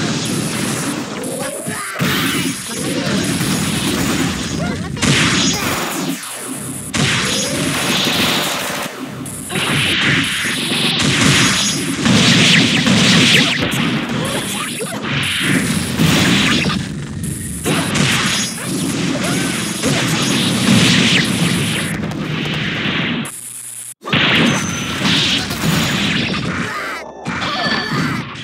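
Fight effects crash, blast and clatter rapidly.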